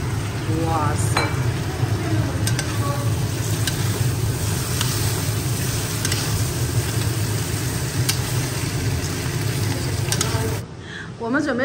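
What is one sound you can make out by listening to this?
A spatula scrapes and clatters against a metal pan.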